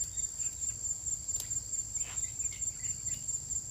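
Leaves rustle faintly.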